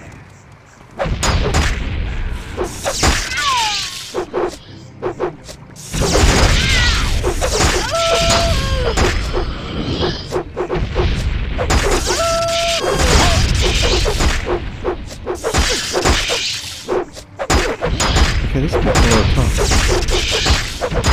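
Swords clash and strike armour again and again.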